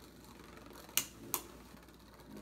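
Plastic spinning-top parts click sharply a couple of times.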